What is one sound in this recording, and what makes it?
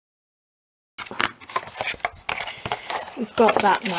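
A bone folder scrapes along a crease in card.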